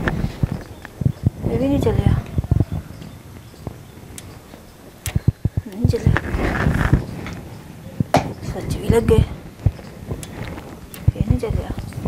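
Keys click and things knock as a computer is handled.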